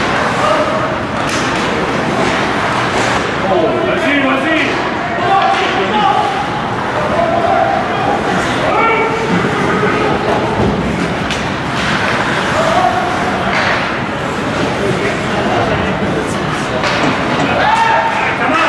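Sticks clack against the puck.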